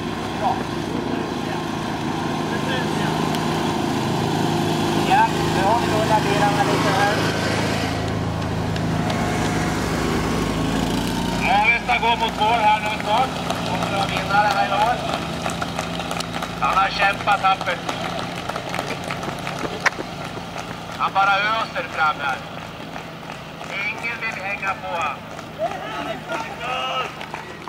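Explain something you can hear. A quad bike engine rumbles steadily nearby.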